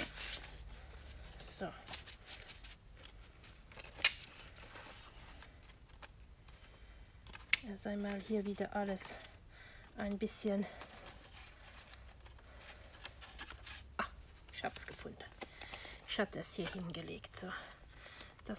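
Paper rustles and crinkles as it is handled up close.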